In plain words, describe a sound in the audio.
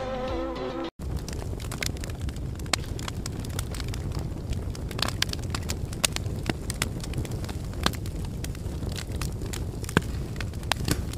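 A fire crackles and pops in a fireplace.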